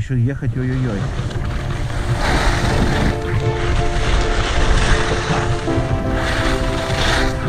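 Skis hiss and scrape over packed snow.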